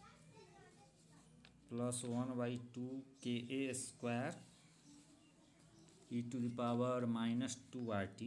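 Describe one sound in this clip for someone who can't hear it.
A pen scratches on paper.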